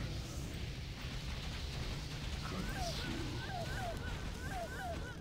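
Magic spells crackle and whoosh in a battle game.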